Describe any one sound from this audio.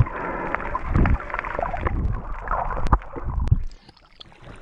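Water bubbles and rushes underwater.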